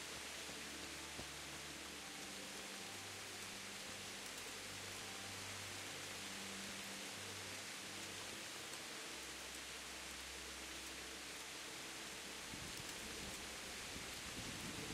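Footsteps crunch slowly on a gravel path.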